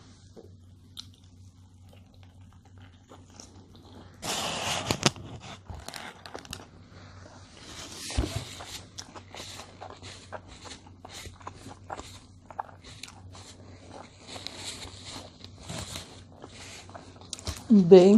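An elderly woman chews food noisily close to a microphone.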